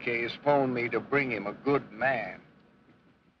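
A man speaks in a low, urgent voice.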